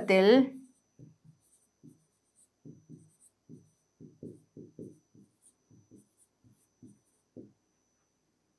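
A pen taps and scratches softly on a writing surface.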